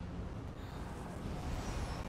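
Lightning crackles sharply.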